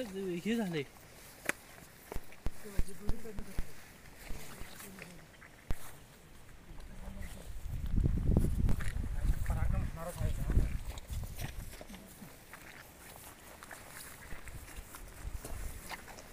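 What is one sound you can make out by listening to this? Footsteps tread softly on wet grass.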